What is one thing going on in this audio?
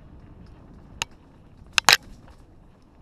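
A bicycle rattles and clicks sharply over bumps.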